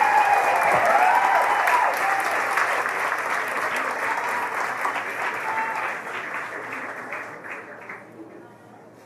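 An audience applauds and cheers, then slowly fades.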